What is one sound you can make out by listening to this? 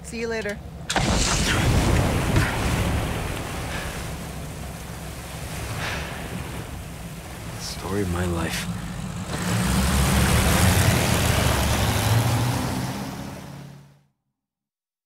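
Water rushes and splashes around a boat.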